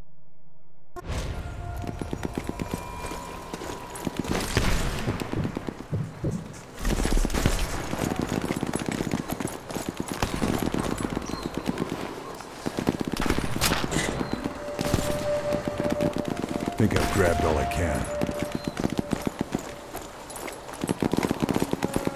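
Footsteps crunch quickly over cobblestones.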